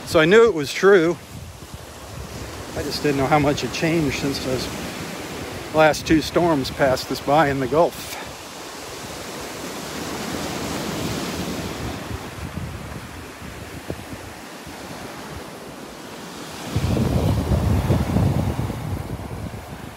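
Waves break and wash onto a sandy shore outdoors.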